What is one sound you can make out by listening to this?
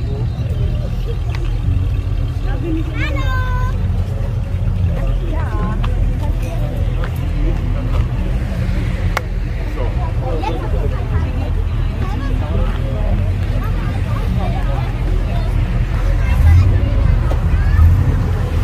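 A crowd of men and women chat nearby outdoors.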